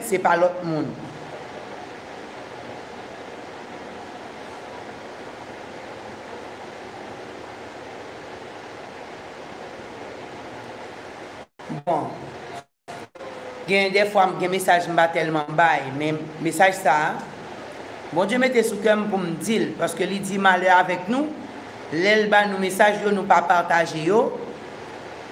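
A woman speaks slowly and solemnly, close to a microphone, with pauses between phrases.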